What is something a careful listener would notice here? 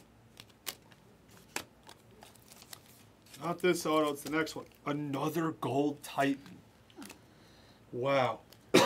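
Trading cards click and rustle as they are shuffled by hand.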